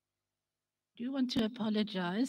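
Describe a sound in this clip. A woman speaks calmly into a microphone, heard through loudspeakers in a large room.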